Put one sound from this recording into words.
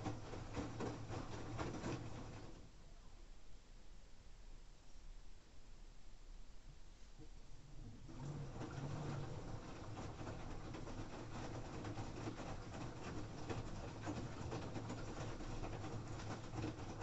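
A washing machine hums with a low, steady drone.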